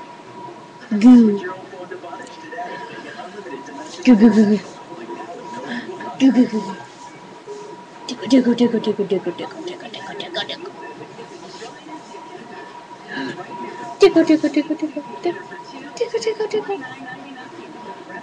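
A baby giggles and coos in short bursts close by.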